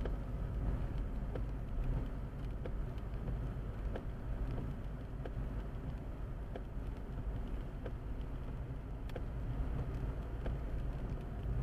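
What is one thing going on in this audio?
A windscreen wiper sweeps across the glass.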